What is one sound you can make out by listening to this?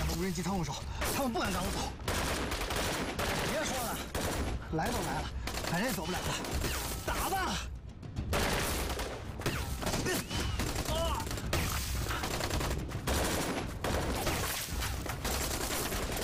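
Rifles fire in rapid bursts of shots.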